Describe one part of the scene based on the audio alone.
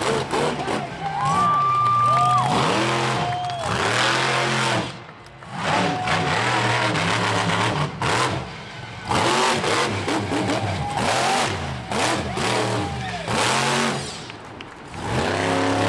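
A monster truck engine roars and revs hard, rising and falling.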